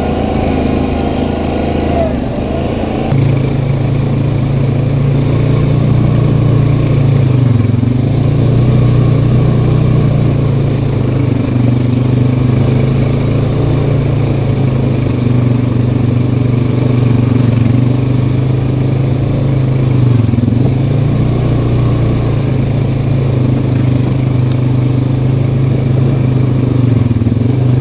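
An off-road quad bike engine hums steadily up close.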